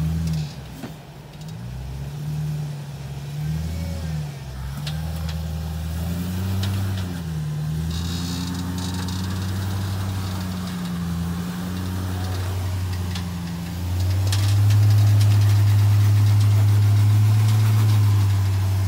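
An engine rumbles and revs as a vehicle crawls over rock.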